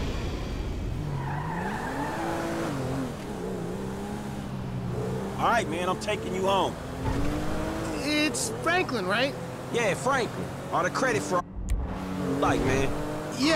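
A car engine revs and hums as the car drives off.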